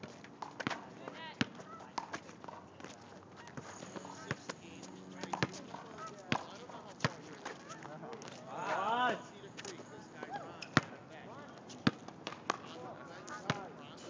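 A basketball bounces on hard pavement.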